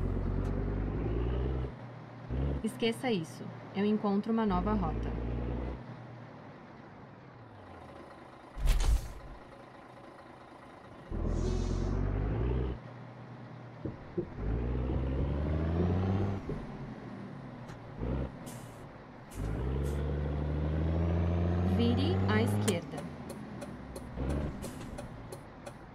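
A truck engine rumbles and revs up and down, sometimes dropping to idle.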